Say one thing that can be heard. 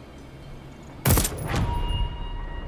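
A gun fires a single loud shot that rings out briefly.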